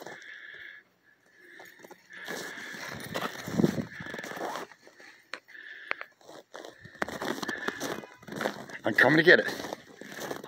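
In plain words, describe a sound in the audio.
Dogs run through crunching snow.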